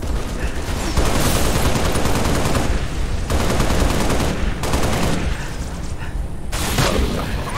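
A rifle fires rapid bursts, close by.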